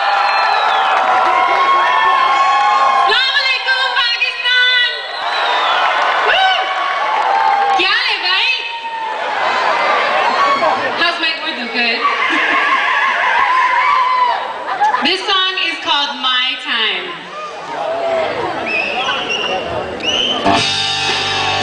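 A woman sings on a stage through loudspeakers, heard from far off in a large open space.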